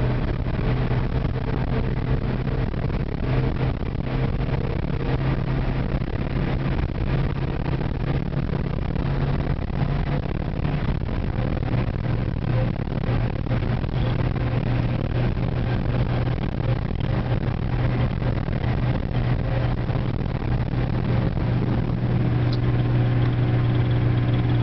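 A car engine drones steadily from inside the car, shifting pitch as it speeds along.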